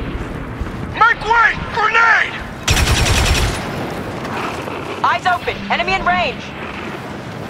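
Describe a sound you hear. Blaster guns fire in quick bursts of sharp, zapping shots.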